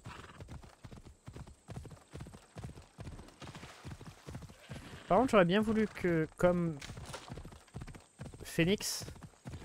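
A horse's hooves thud rapidly over the ground.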